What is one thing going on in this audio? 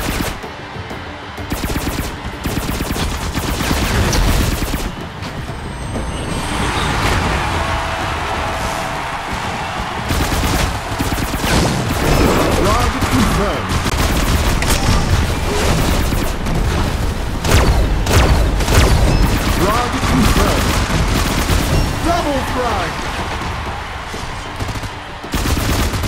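Game guns fire in rapid bursts.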